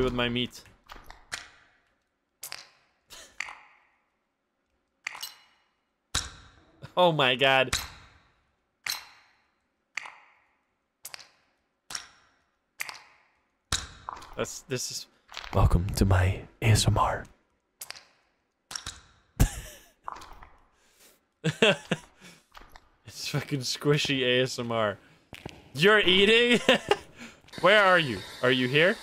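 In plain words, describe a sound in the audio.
A young man talks and laughs into a close microphone.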